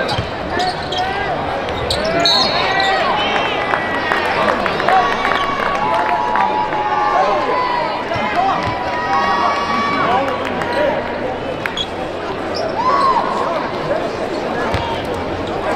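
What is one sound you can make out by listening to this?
A basketball thuds as it bounces on the court.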